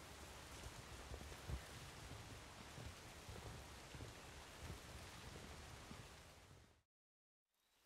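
Footsteps thud on a wooden bridge.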